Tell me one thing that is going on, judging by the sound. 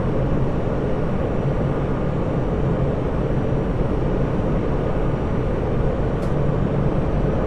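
A train rumbles steadily along the rails through a tunnel.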